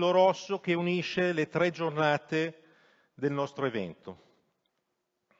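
An elderly man speaks calmly through a microphone in a large hall.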